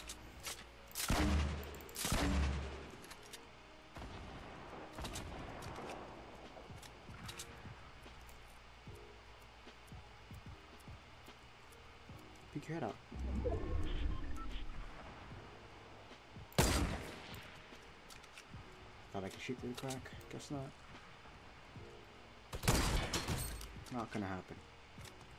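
Loud rifle shots crack out in a video game.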